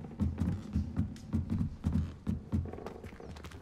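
Footsteps thud steadily on stone stairs.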